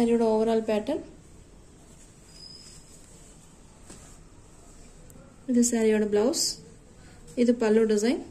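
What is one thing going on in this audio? Soft cloth rustles as it is handled.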